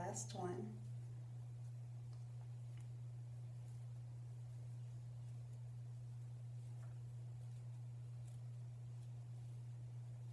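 Fingers rustle softly through curly hair.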